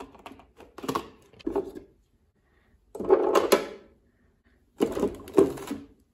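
Plastic bottles clatter against each other in a drawer.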